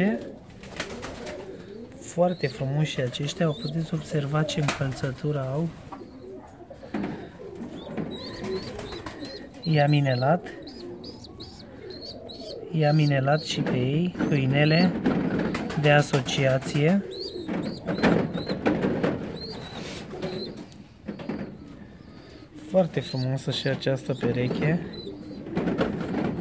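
Young pigeon chicks squeak softly, close by.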